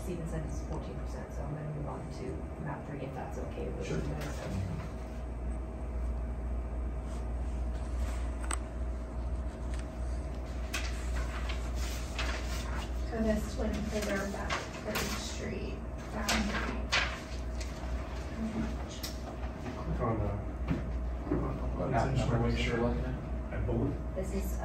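Adults talk in low, calm voices, heard through a room microphone.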